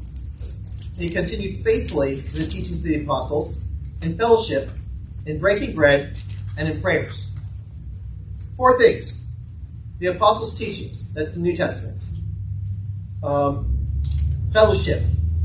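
A man speaks calmly into a microphone in an echoing room.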